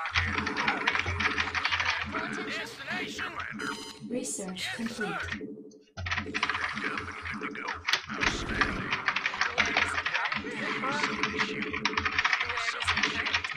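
Rapid gunfire rattles in a battle game, with a brief pause.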